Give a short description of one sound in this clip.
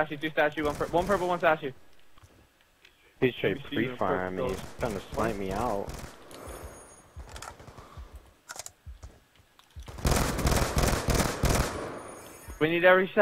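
Gunfire rattles in bursts from a video game.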